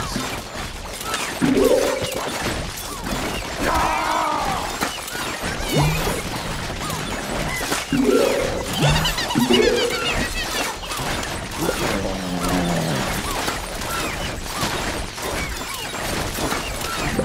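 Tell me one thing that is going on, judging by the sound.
Cartoon plants fire rapid popping shots throughout.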